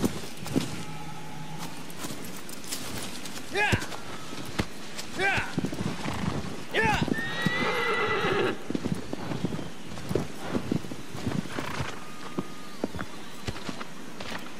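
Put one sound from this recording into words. A horse's hooves thud steadily on soft ground.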